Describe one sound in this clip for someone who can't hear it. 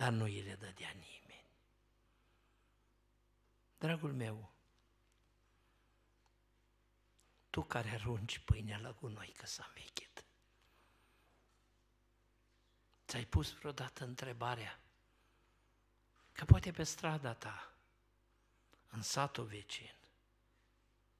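A middle-aged man speaks into a microphone in bursts, with pauses between phrases.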